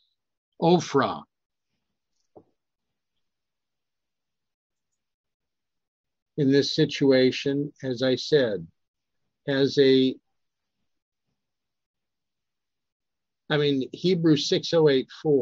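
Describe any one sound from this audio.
An elderly man speaks calmly through a microphone on an online call, in short bursts with pauses.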